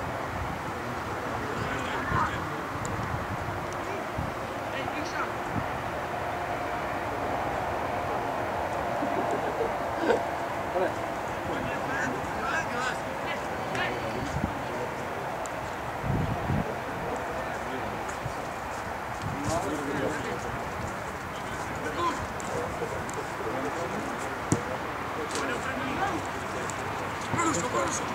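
Young men shout to each other across an open field in the distance.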